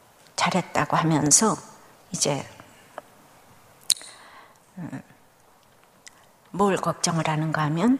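A middle-aged woman reads out calmly into a microphone, with pauses.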